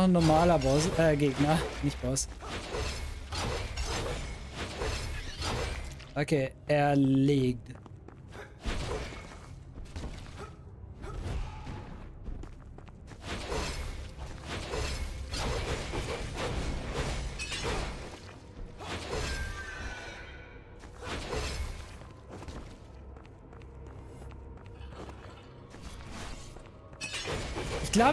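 Blades slash and strike in quick, sharp hits.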